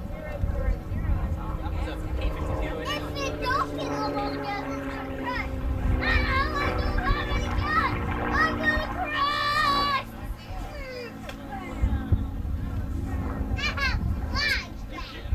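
A propeller plane's engine roars loudly as it flies past, its pitch slowly dropping.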